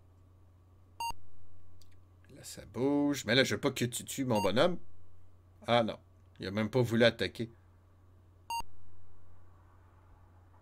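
A computer game gives a short electronic beep.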